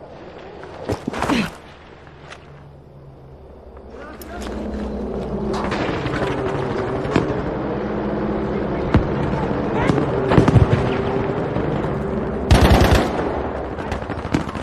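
A rifle fires with a sharp crack.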